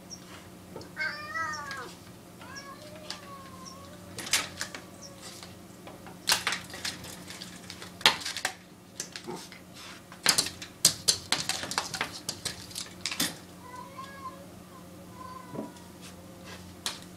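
A cat chirps and chatters softly nearby.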